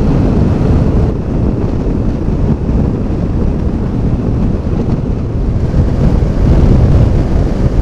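Wind roars loudly against a microphone.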